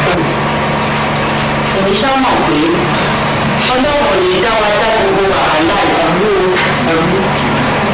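An elderly woman speaks tearfully, close by.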